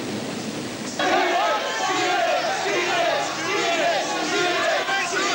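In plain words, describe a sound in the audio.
A large crowd screams and cheers loudly.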